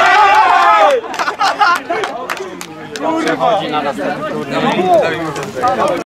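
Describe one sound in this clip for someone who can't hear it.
Young men talk and shout over each other nearby.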